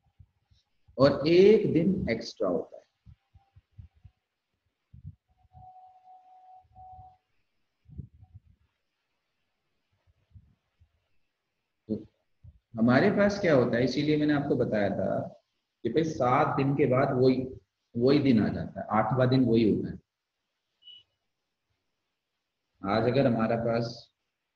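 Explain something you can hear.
A man explains calmly over an online call, speaking in bursts with pauses.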